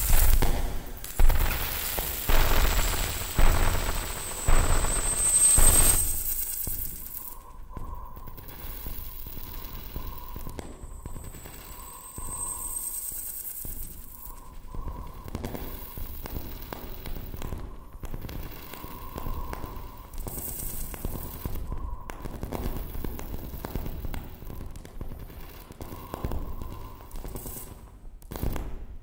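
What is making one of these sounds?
Harsh, noisy electronic sounds play loudly through speakers, then turn quieter with a wavering hum.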